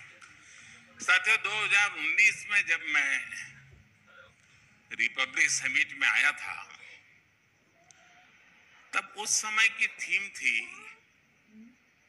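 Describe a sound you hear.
An elderly man speaks slowly and deliberately into a microphone, heard through loudspeakers in a large hall.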